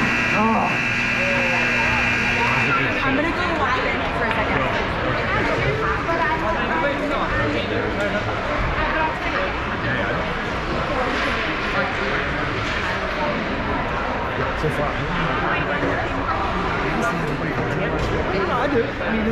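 Children's voices chatter and call out, echoing in a large hall.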